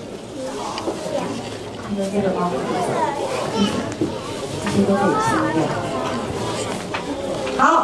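A woman speaks calmly through a small headset microphone.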